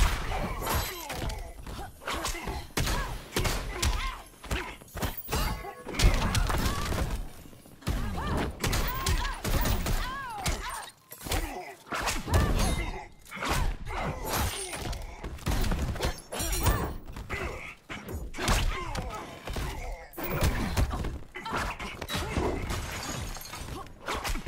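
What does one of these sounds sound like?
Punches and kicks land with sharp thuds again and again.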